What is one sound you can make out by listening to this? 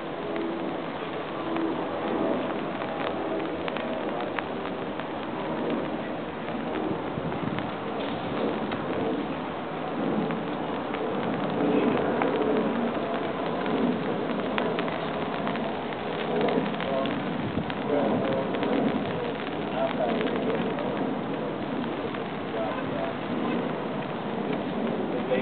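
A crowd of adults murmurs and talks at a distance outdoors.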